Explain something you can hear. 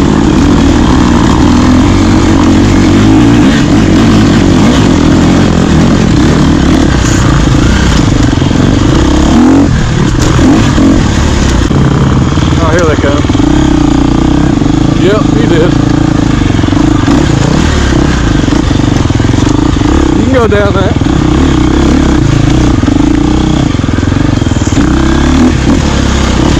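Another dirt bike engine buzzes and revs nearby.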